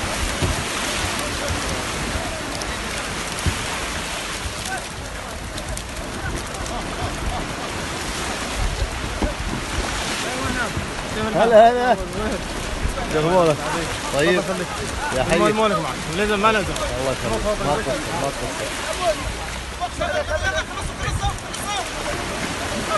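A crowd of men chatter nearby outdoors.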